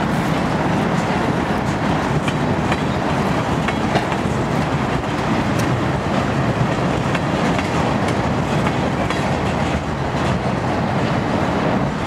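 Freight car wheels clack over rail joints.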